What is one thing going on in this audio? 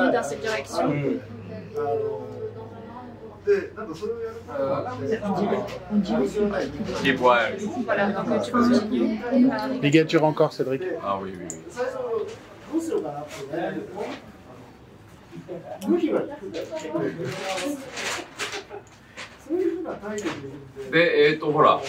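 An older man talks calmly and explains, close by.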